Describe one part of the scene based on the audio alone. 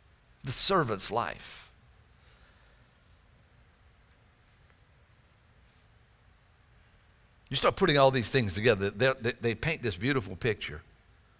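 A middle-aged man speaks with animation through a headset microphone, pausing between phrases.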